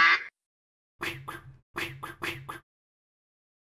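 A man speaks in an animated, exaggerated voice.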